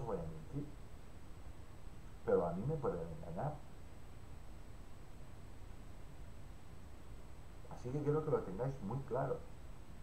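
A middle-aged man speaks calmly and close into a microphone, in short bursts with pauses.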